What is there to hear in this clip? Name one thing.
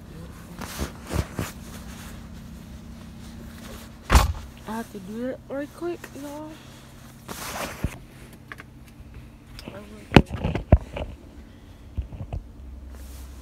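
Rustling and bumping against a phone's microphone come and go.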